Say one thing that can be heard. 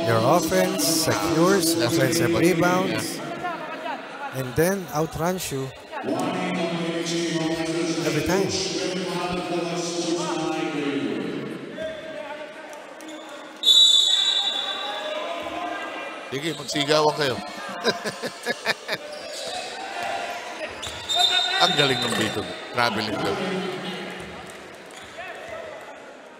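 A crowd cheers and murmurs in a large echoing hall.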